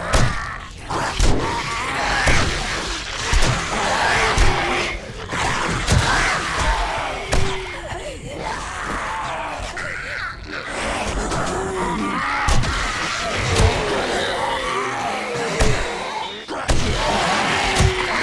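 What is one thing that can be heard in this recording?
A club thuds against flesh.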